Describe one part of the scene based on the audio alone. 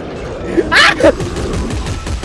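A gun fires in short bursts.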